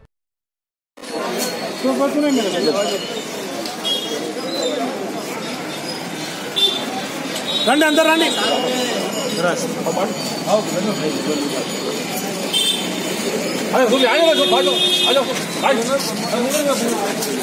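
A crowd of men talk and chatter close by.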